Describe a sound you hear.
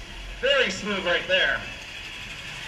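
A man shouts excitedly nearby.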